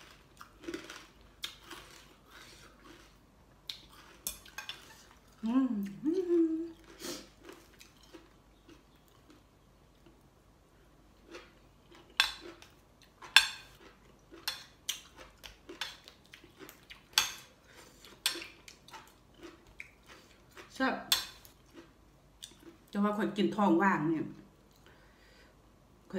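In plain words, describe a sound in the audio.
A woman eats noisily, chewing and smacking close by.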